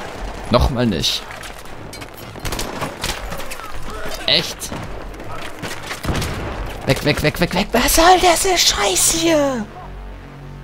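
Rapid gunshots crack close by.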